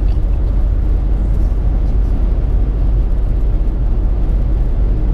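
A car drives fast along a highway, with a steady low rumble of road and engine noise inside the cabin.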